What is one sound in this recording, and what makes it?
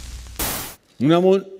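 An elderly woman speaks into a microphone.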